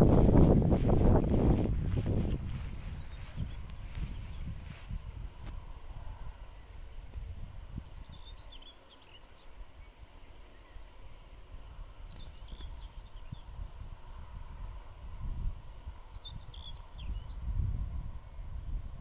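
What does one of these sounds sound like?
A dog runs through tall grass, rustling it.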